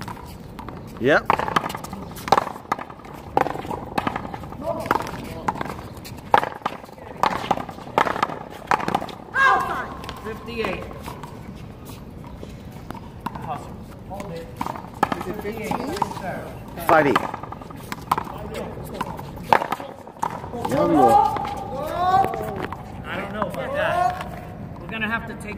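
Racquets crack as they hit a ball.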